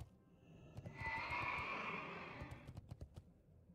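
A fire roars and crackles.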